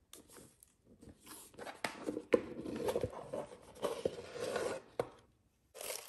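A cardboard box lid scrapes off.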